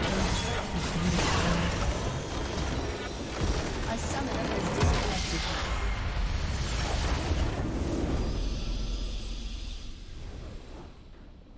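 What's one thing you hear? Game battle effects blast and crash loudly.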